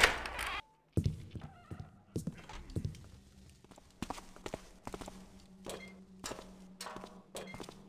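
Footsteps thud on a stone floor.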